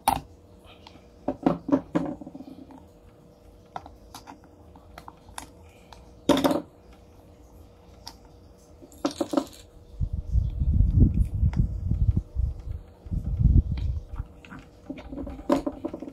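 Plastic parts of a fan click and knock as hands handle them.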